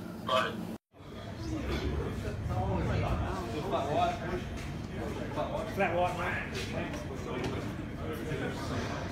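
A man asks questions loudly.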